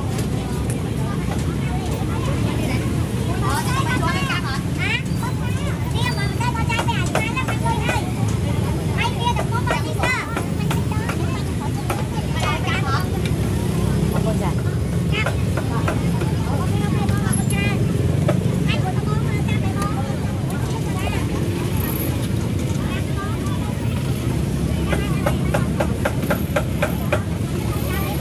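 A motor scooter engine idles close by.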